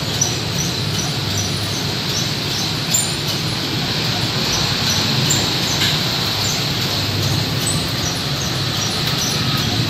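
A wheel balancing machine whirs steadily as it spins a tyre.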